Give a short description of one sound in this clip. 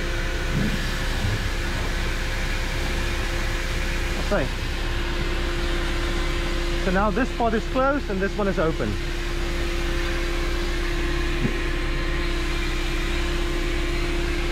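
A truck's engine hums steadily close by.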